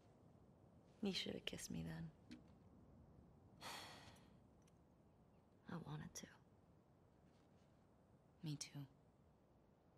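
A young woman speaks softly and playfully nearby.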